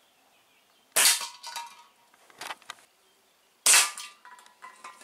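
An air rifle fires with a sharp crack.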